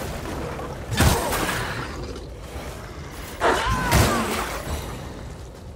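Heavy weapon blows strike with loud crashing bursts.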